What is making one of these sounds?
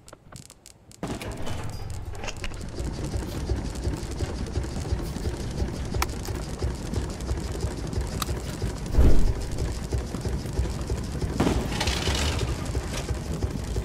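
A heavy machine rumbles loudly as it rolls along.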